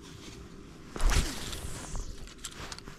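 A fishing rod swishes through the air in a cast.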